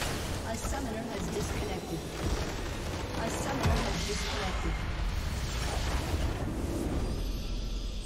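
Game spell effects crackle and boom as a structure explodes.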